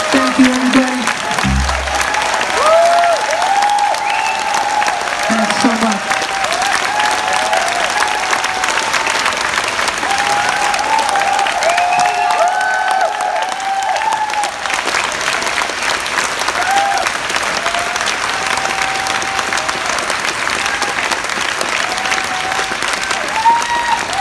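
A large crowd claps and cheers loudly in a big echoing hall.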